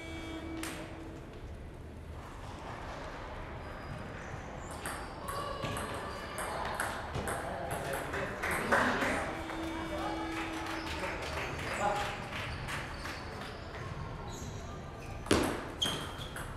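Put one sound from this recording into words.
A table tennis ball clicks quickly back and forth off paddles and a table in an echoing hall.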